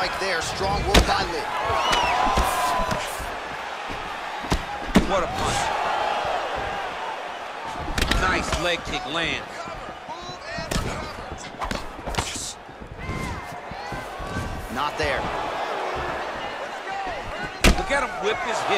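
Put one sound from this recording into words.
Blows land with sharp thuds.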